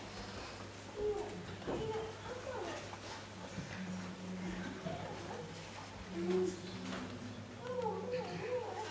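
A man speaks quietly in an echoing hall.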